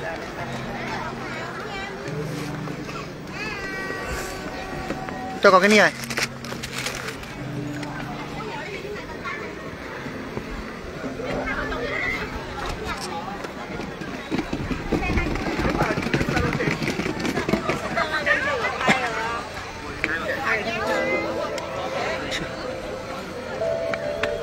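A crowd of adults chatters outdoors.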